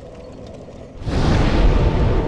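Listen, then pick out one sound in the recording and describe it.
A magical blast bursts with a loud, rushing roar.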